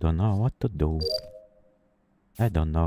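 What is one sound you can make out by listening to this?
A short electronic beep sounds.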